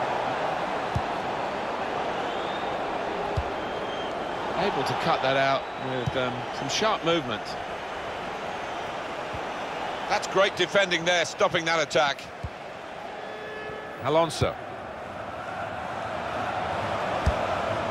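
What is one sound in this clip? A football is kicked with soft thuds.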